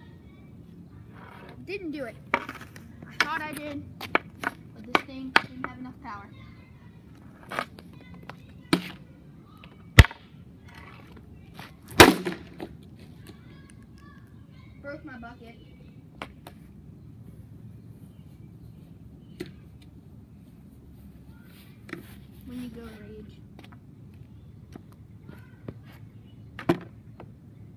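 A hockey stick clacks and scrapes on pavement.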